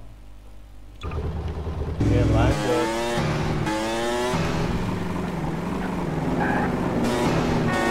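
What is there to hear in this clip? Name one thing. A motorcycle engine roars and revs.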